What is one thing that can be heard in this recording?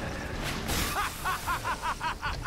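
A man laughs in a deep, mocking voice.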